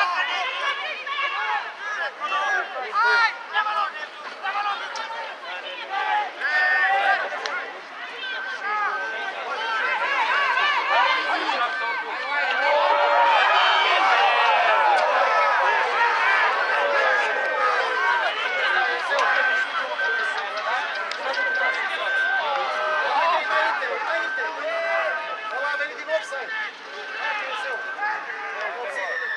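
Teenage boys shout and call to each other across an open rugby pitch outdoors.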